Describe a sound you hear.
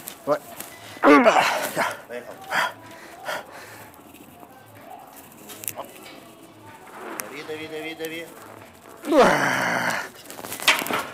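A man grunts and strains loudly.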